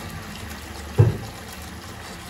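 A plastic bottle knocks against a counter.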